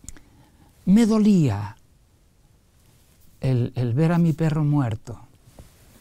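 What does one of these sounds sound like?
An elderly man speaks expressively into a close microphone.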